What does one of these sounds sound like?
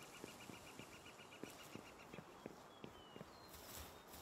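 Footsteps tread on stone at a steady pace.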